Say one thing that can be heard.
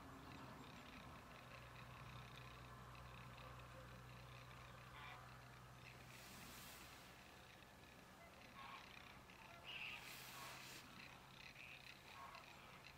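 Ducks call softly on the water.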